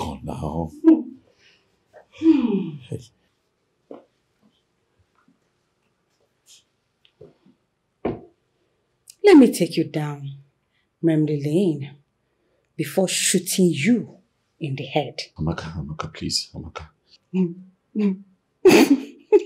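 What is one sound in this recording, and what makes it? A man speaks quietly and emotionally nearby.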